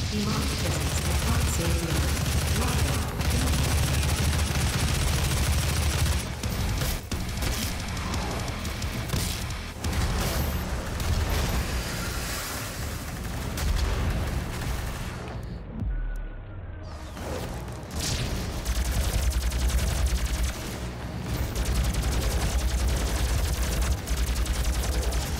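Guns fire rapidly in loud bursts.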